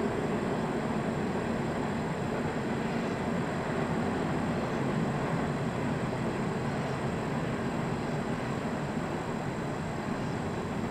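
A freight train rumbles steadily in the distance.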